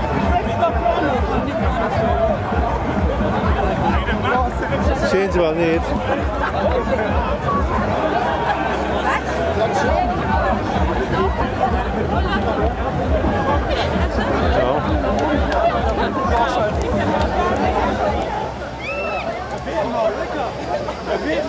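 Many feet thud on grass as runners jog past.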